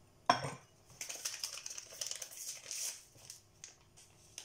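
A paper packet rustles and tears open.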